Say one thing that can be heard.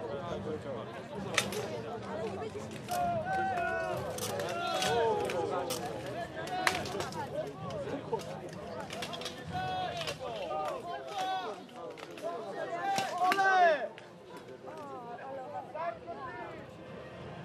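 A crowd of men and women talks and calls out in the distance.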